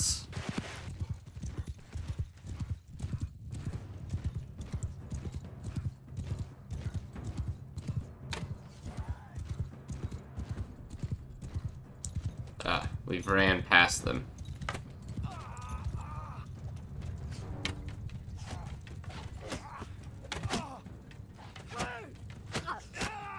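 Horse hooves thud rapidly at a gallop.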